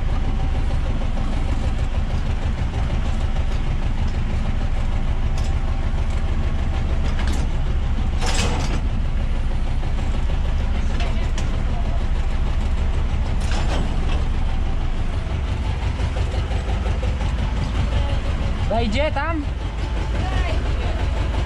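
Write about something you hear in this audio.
A diesel tractor engine idles, heard from inside the cab.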